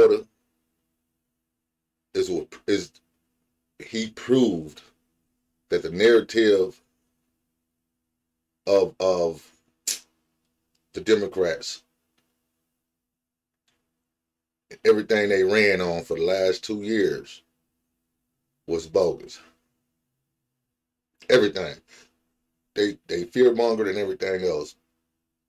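A man talks into a microphone in short bursts with pauses between them.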